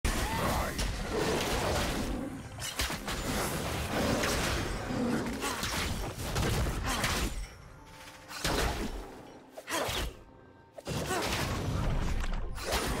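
Game fighting sound effects clash and crackle in quick bursts.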